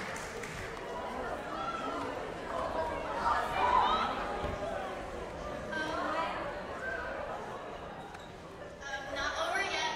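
A crowd of young people on stage chatter and call out with excitement.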